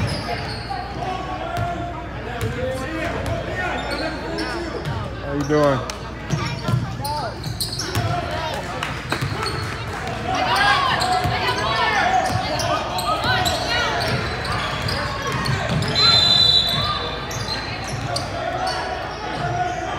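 A crowd of spectators talks and shouts in a large echoing gym.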